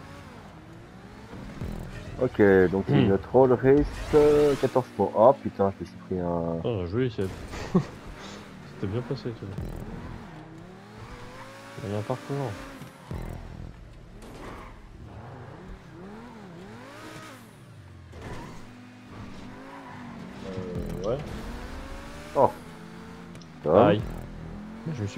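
A sports car engine roars at full throttle.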